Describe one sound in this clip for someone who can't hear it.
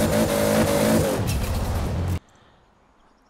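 Rocks crash and tumble as a car smashes through them.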